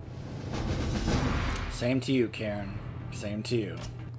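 A game menu button clicks.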